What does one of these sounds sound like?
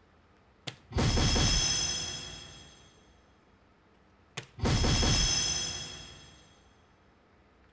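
An electronic dartboard plays a loud ringing jingle after a hit.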